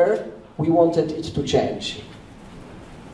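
A man speaks into a microphone, heard through a loudspeaker.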